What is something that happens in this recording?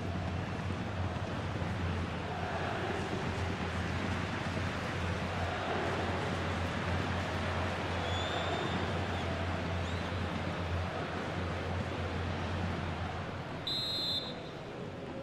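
A stadium crowd roars and cheers steadily.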